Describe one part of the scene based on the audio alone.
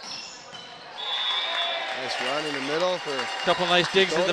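A crowd cheers and claps after a point.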